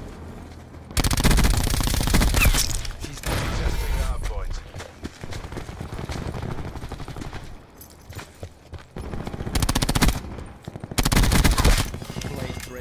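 An automatic gun fires in loud rapid bursts.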